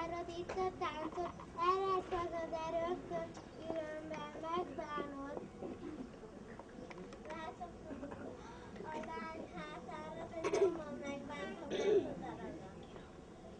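A group of young children sing together outdoors.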